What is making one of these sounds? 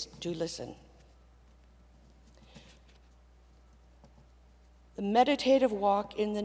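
An older woman speaks calmly into a microphone, with a pause in between.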